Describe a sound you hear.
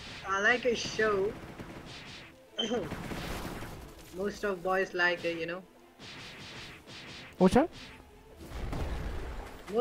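Fiery blasts roar and explode.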